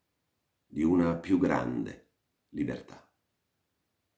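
A man reads aloud calmly, close to a microphone.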